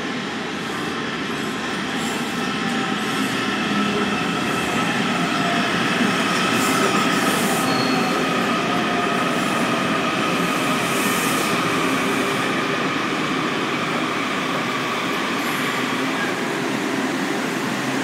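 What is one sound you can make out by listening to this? A subway train rumbles into an echoing underground station and rolls past.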